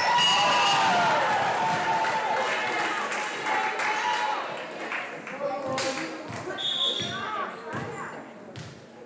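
Young women cheer and call out loudly in an echoing gym.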